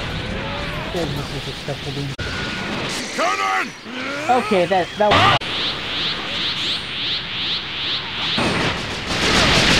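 Whooshing rushes of flight sweep past.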